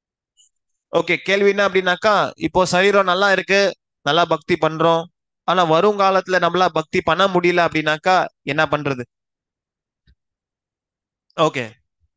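A young man speaks with animation into a headset microphone, heard through an online call.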